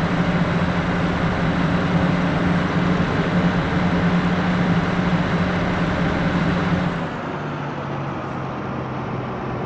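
Tyres roll over the road with a steady rush.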